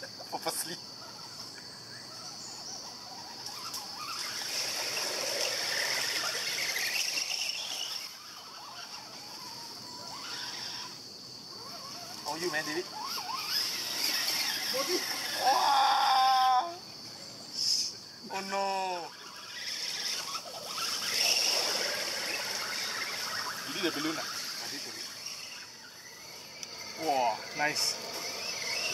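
Small electric motors whine as toy trucks crawl through mud.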